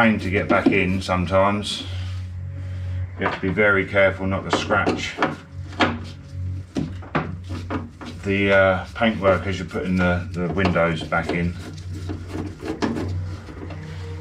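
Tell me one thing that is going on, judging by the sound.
A man talks calmly up close.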